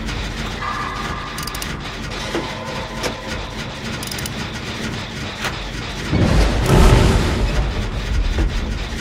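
Metal parts of an engine clatter and clank as they are worked on.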